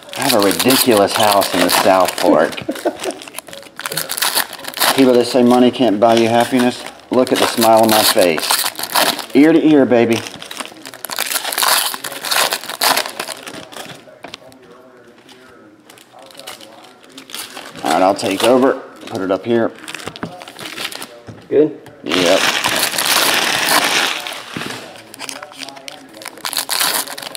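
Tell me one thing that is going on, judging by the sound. Foil card packs crinkle and rustle as they are torn open.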